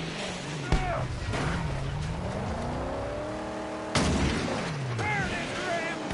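A video game car engine revs.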